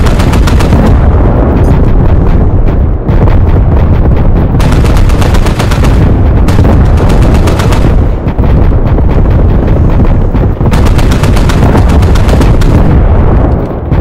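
A rapid-fire cannon fires in fast bursts.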